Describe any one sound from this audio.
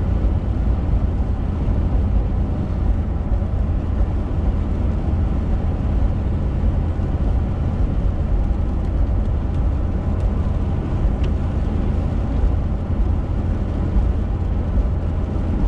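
Raindrops patter lightly on a windshield.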